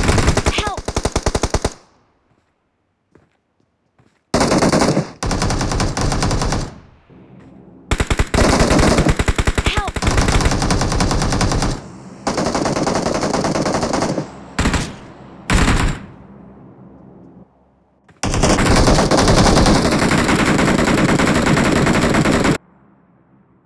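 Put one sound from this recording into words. A rifle fires in rapid bursts of shots.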